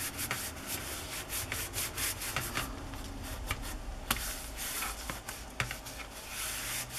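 Fingers rub and press on stiff paper and card.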